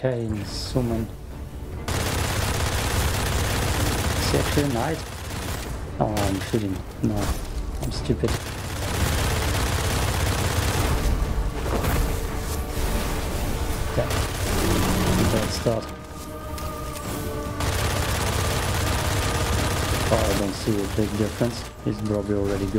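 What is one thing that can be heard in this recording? A young man talks with animation through a microphone.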